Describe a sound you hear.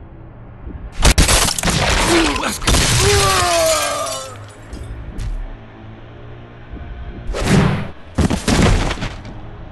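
A heavy crash booms and rumbles.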